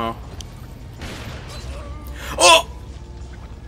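A gun fires with a loud bang.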